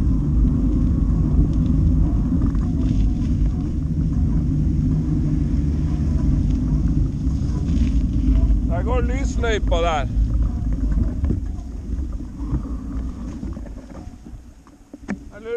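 Tyres rumble steadily over a wet dirt road, then fade.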